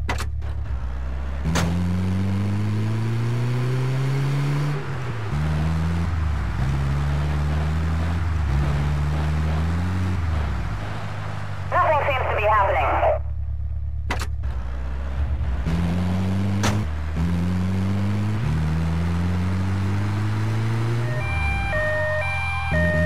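An ambulance van's engine revs up through the gears.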